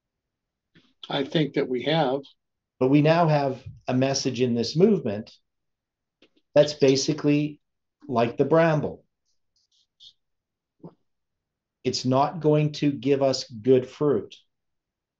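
An older man speaks calmly and closely into a microphone, with pauses.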